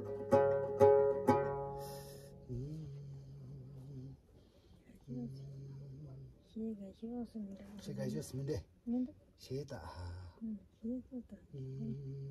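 A man plucks a stringed lute with a bright, ringing twang and a low droning note.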